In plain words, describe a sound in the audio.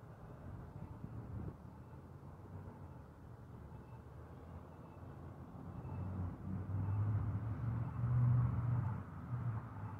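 A car engine rumbles low and grows louder toward the end.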